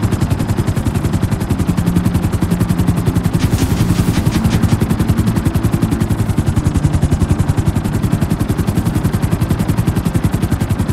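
A helicopter's rotor thumps.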